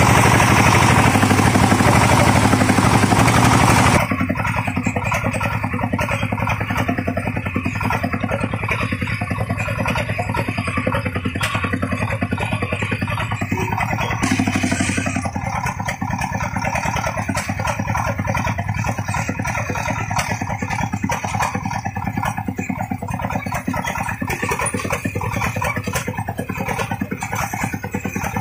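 A two-wheel tractor rattles and clanks over a bumpy dirt track.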